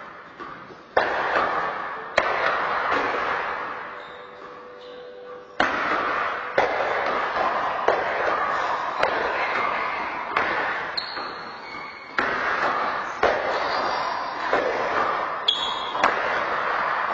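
A ball smacks hard against rackets and a wall in a large echoing court.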